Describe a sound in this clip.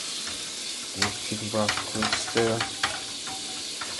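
A whisk rattles against the inside of a metal pot.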